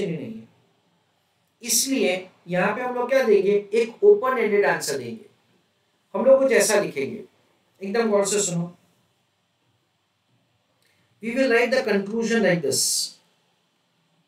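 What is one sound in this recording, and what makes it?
A man lectures with animation, close to a microphone, in short bursts with pauses.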